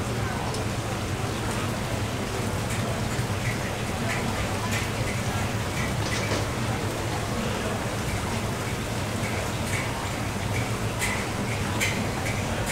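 A fan hums steadily.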